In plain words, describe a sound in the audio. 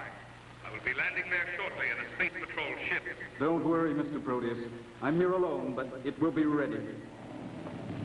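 A man speaks into a microphone with animation, close by.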